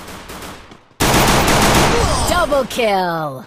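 A pistol fires several sharp shots.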